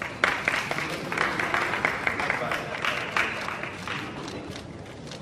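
A small crowd applauds.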